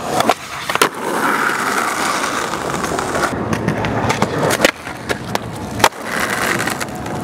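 Skateboard wheels roll and rumble over pavement.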